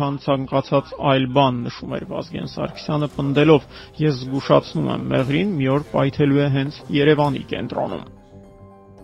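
A man speaks forcefully into a microphone outdoors.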